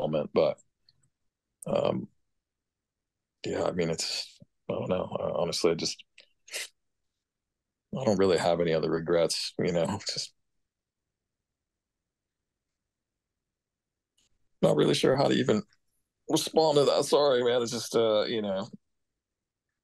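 An older man speaks calmly over an online call, in short bursts with pauses.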